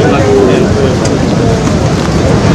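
A crowd of men talks and murmurs close by.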